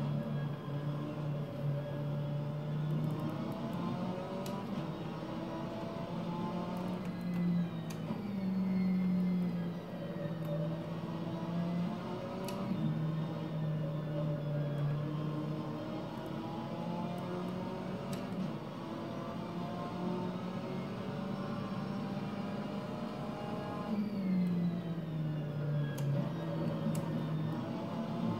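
A racing car engine roars, revving up and dropping as it shifts gears, heard through a loudspeaker.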